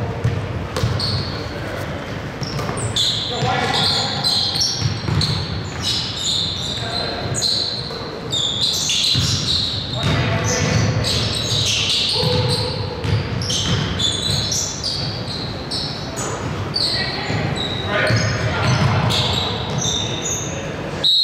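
A basketball bounces on the court with echoing thumps.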